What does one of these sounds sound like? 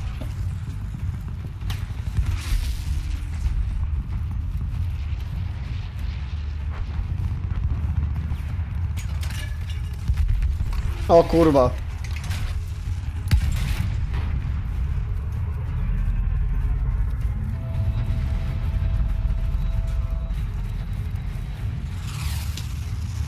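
Gunfire and explosions boom in bursts.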